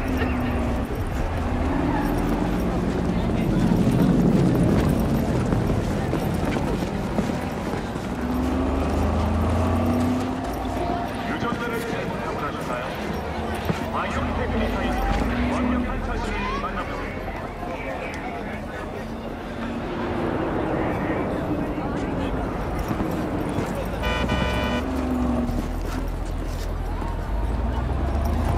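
Cars hum past on a nearby road.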